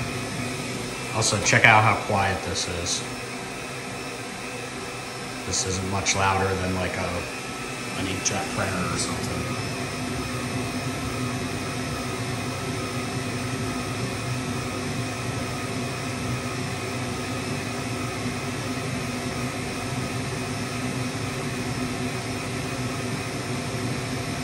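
A laser engraver hums steadily with a whirring fan.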